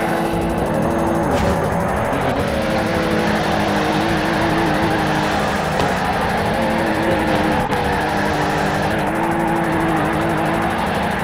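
A car engine revs high and steady throughout.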